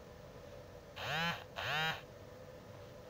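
A phone notification chimes twice.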